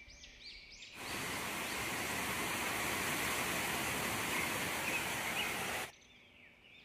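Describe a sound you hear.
A stream rushes over stones close by.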